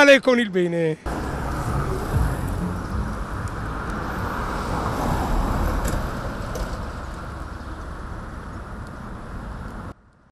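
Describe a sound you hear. Footsteps scuff along a paved road outdoors.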